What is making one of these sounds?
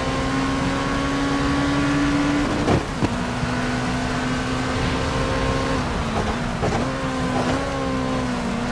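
A race car engine roars steadily, dropping in pitch with each gear change.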